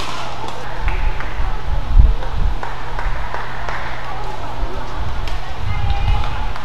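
Players' feet thud on a court floor.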